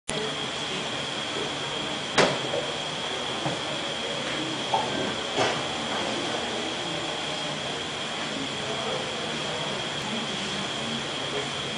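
A projector fan whirs steadily with a faint high whine.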